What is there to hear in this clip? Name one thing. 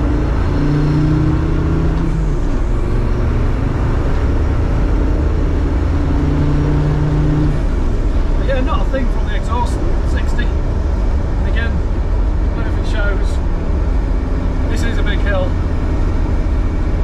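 A vehicle's engine drones steadily with loud road rumble.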